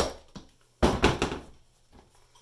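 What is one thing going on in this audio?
A plastic container thumps down on a wooden board.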